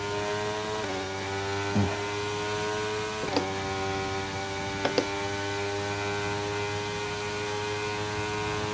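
A racing car engine whines steadily at high revs.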